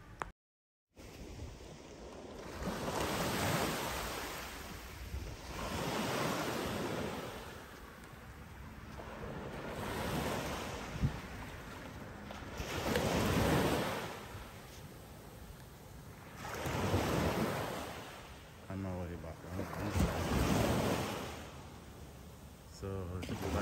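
Waves wash gently onto the shore in slow, swelling surges.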